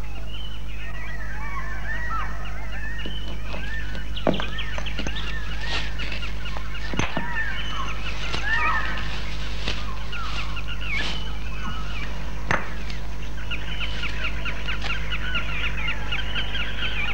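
A man rustles and snaps dry branches.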